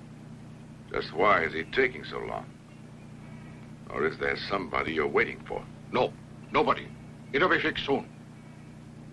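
A man speaks calmly nearby, in short phrases.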